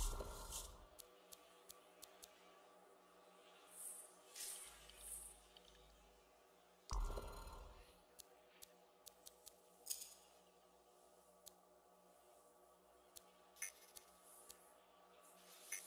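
Soft interface clicks tick as menu items are selected.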